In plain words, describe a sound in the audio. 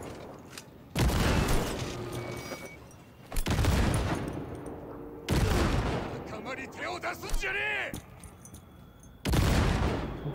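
A heavy rifle fires loud, booming single shots that echo away.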